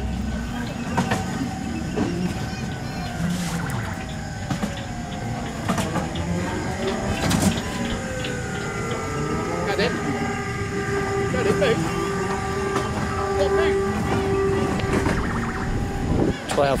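Bumper cars hum and bump into each other.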